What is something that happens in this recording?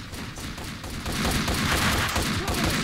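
A submachine gun fires rapid bursts in a hard, echoing space.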